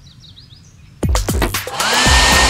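A hair dryer whirs loudly.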